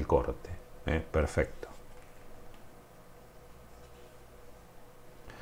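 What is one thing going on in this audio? Playing cards rustle softly in a hand.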